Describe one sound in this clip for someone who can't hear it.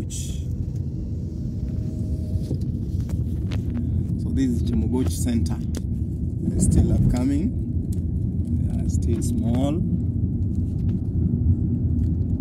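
A car engine hums steadily and tyres roll on a paved road, heard from inside the car.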